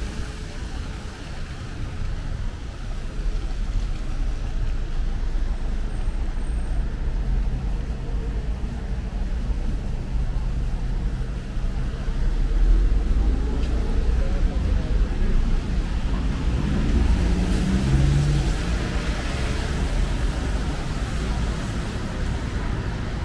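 Traffic swishes past on a wet road.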